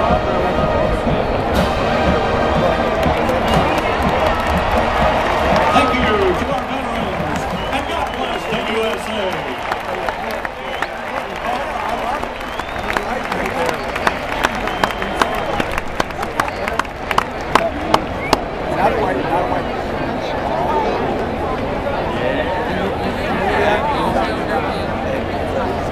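A marching band plays brass and drums in a large open stadium.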